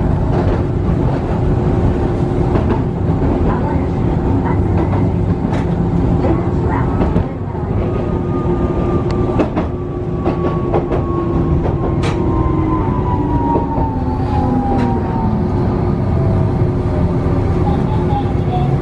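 A train rumbles steadily along the tracks, heard from inside a carriage.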